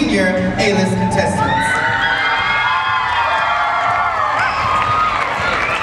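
An audience cheers and screams loudly in a large hall.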